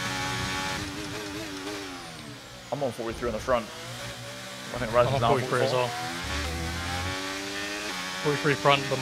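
A racing car engine drops in pitch as the car slows, then climbs again.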